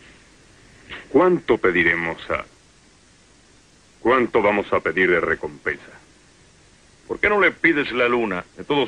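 An adult man speaks.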